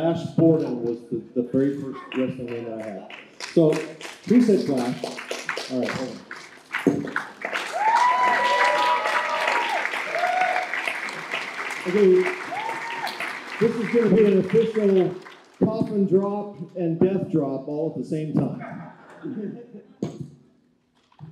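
A man speaks with animation through a microphone and loudspeaker in a large hall.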